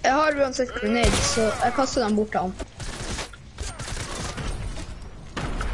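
Rapid gunshots crack out.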